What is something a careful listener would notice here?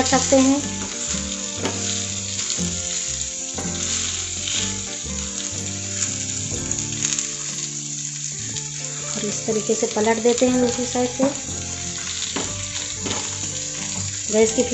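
A spatula scrapes and taps against a pan.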